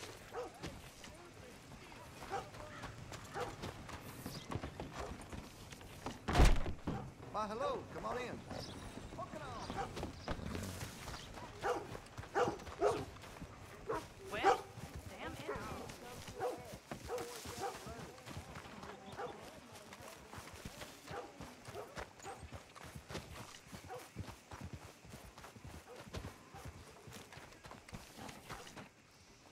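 Footsteps thud on dirt and wooden boards.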